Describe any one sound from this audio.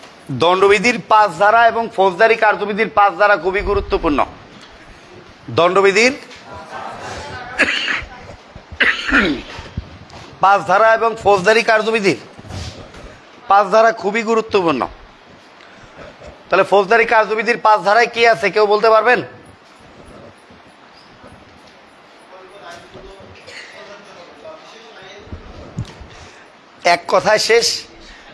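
A middle-aged man speaks with animation close by, in a room that echoes a little.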